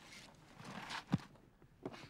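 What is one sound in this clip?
Boots and hands scrape on rock during a climb.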